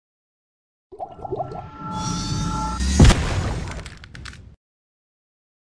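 A magical aura hums and whooshes as it powers up.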